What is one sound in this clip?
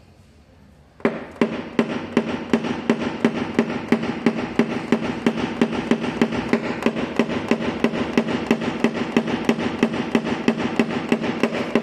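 A small tool taps steadily on a metal panel.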